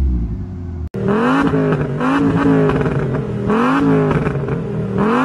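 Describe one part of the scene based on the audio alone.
A second car engine revs repeatedly with a raspy exhaust roar.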